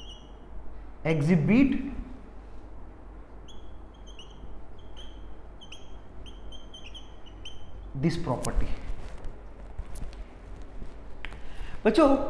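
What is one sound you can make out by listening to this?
A young man speaks clearly and steadily, close by.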